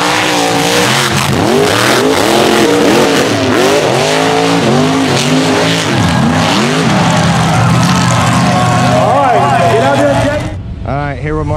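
Monster truck engines roar and rev loudly outdoors.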